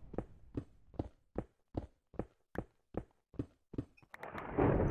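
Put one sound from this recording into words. A pickaxe taps against stone in a quick, even rhythm.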